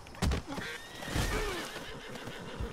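A man grunts in pain.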